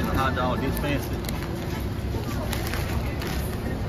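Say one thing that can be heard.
Paper wrapping crinkles and rustles.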